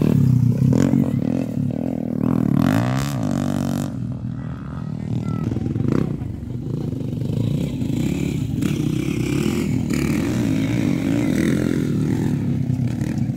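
Dirt bike engines buzz and rev loudly outdoors.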